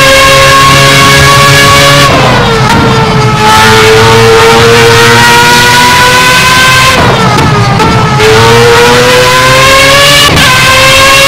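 A racing car engine screams at high revs, dropping in pitch on gear shifts and braking, then climbing again.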